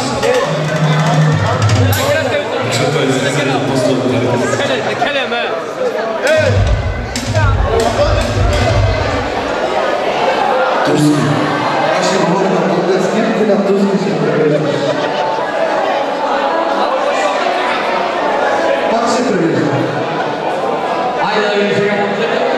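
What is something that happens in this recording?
A crowd chatters and cheers.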